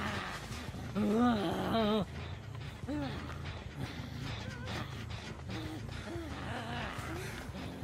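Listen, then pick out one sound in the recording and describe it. A creature growls and grunts in short bursts.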